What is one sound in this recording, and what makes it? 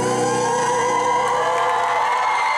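A man sings a long held note into a microphone over loud amplified sound.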